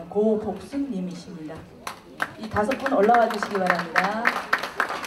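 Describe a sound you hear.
A woman speaks over a loudspeaker in a large echoing hall.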